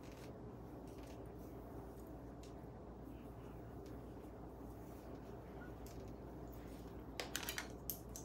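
A comb rustles through long hair.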